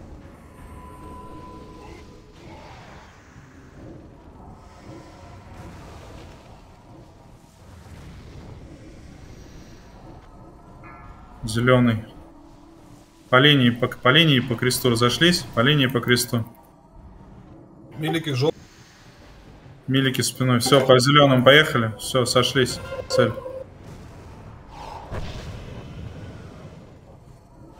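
Spell effects whoosh and crackle in a fantasy battle.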